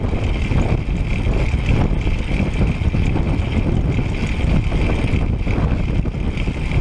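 Wind buffets loudly against the microphone while riding fast outdoors.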